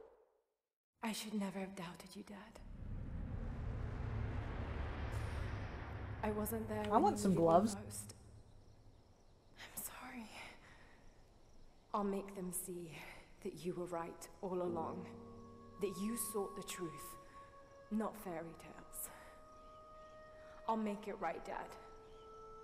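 A young woman speaks softly and sadly.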